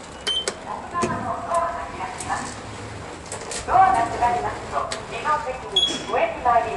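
An elevator hums softly as it moves.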